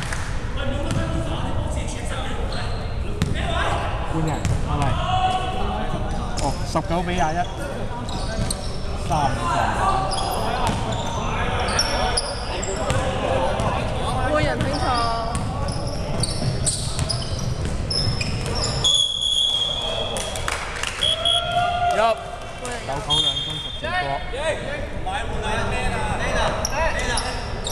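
Young men talk and call out nearby in a large echoing hall.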